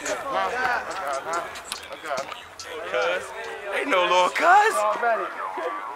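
A young man raps with energy close by.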